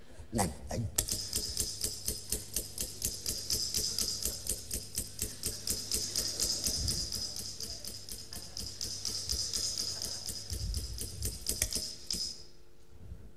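Rapid electronic ticking pulses steadily, then stops.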